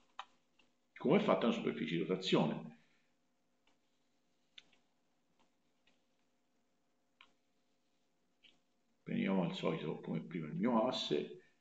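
A man speaks calmly and explains, close to a microphone.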